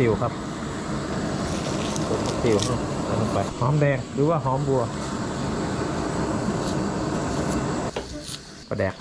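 A gas burner hisses steadily.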